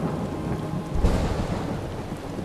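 Thunder cracks loudly.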